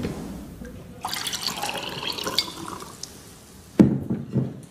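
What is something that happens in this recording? Water pours from a glass carafe into a glass.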